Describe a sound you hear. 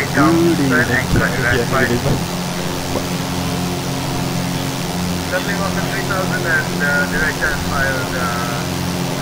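A young man talks calmly into a headset microphone, close up.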